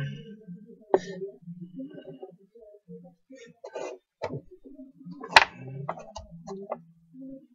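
Small objects click and tap against each other.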